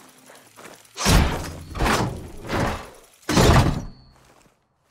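A heavy metal lid is pried open with loud clanks and thuds.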